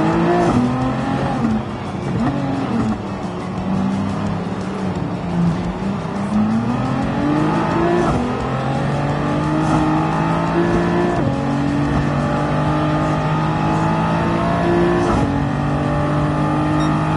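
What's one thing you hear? A racing car engine revs hard, dropping in pitch as it slows and then climbing steadily.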